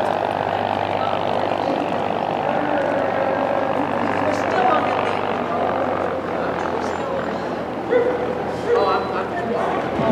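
Women chat quietly nearby.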